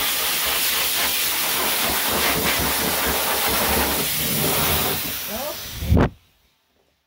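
A hair dryer blows loudly and steadily.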